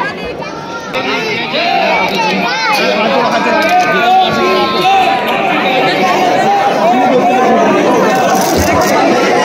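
A crowd of men and women sings and chants together nearby.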